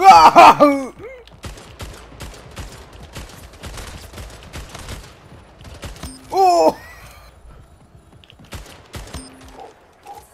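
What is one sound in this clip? Gunfire from a rifle crackles in rapid bursts.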